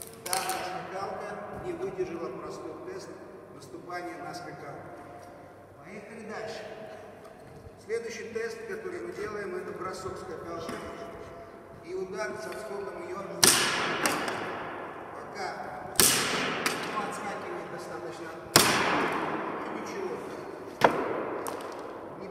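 A man talks calmly in a large echoing hall.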